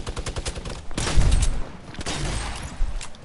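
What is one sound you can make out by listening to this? A gun fires loud sharp shots.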